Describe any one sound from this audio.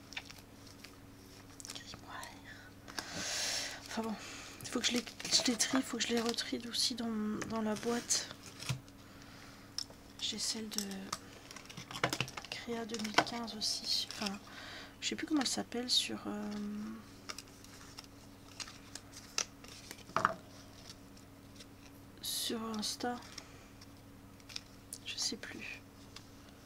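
Plastic colour swatches click and clatter as they are shuffled.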